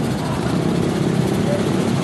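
Motorbike engines rumble as they ride past.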